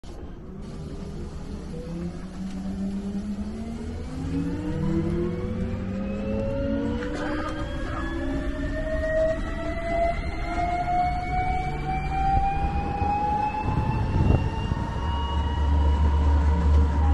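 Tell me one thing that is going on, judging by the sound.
Wind rumbles against the open sides of a moving vehicle.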